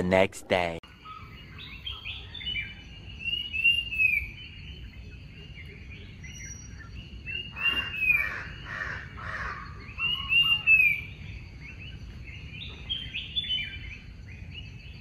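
Birds chirp and call over a forest outdoors.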